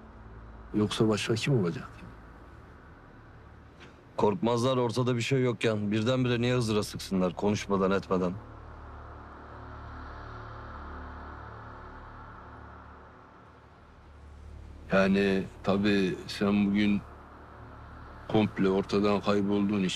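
A middle-aged man speaks tensely, close by.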